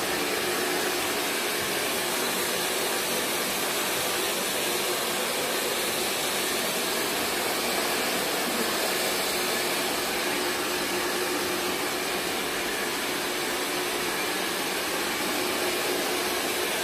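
A hair dryer blows with a steady, loud whoosh.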